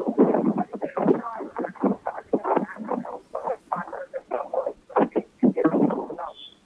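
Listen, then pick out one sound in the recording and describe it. A man reads out steadily and clearly into a microphone.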